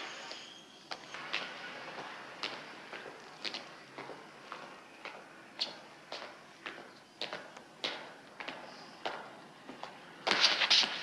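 Footsteps descend stone stairs with a hard echo.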